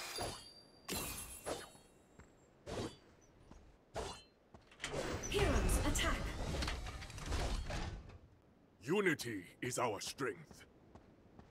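Video game combat sound effects burst out in short blasts and whooshes.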